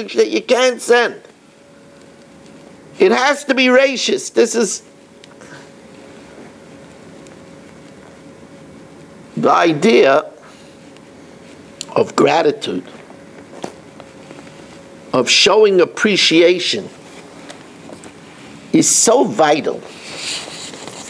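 An elderly man speaks with animation in short bursts, close by.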